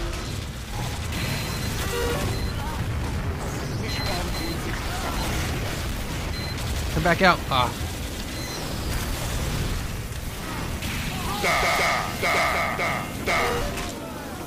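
A flamethrower roars in bursts.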